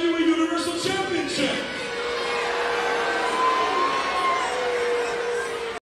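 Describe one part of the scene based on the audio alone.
A large crowd cheers and chants in a big echoing arena.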